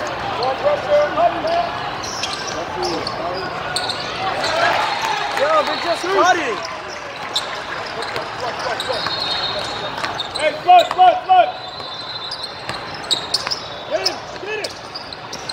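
A basketball bounces on a hard floor with a thud.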